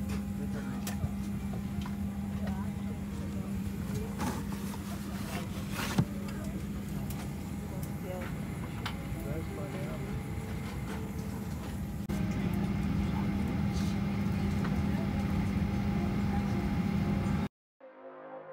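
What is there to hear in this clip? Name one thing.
A steady low hum fills an airliner cabin.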